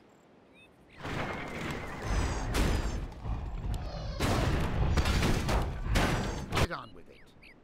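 Weapons clash in a noisy fantasy battle.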